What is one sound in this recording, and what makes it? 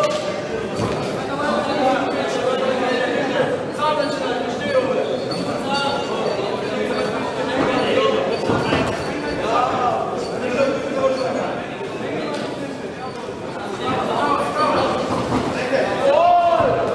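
A crowd in a large hall shouts and cheers throughout.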